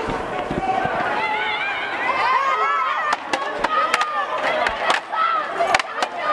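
A crowd of people shouts outdoors close by.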